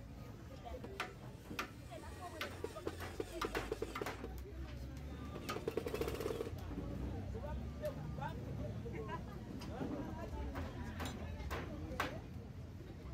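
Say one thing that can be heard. A tool knocks against wood.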